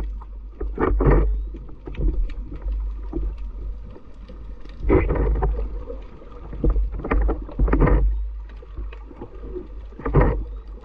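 Water rumbles and rushes, muffled underwater.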